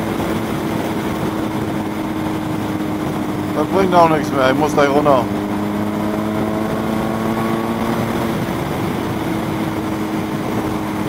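A motorcycle engine drones steadily at high speed.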